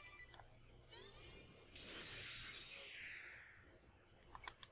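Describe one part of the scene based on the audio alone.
A magical spell whooshes and shimmers, then fades.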